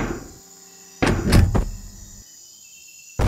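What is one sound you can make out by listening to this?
A body hits the ground with a heavy thud.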